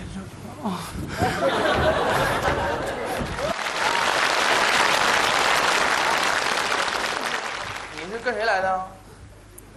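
An audience laughs and applauds loudly.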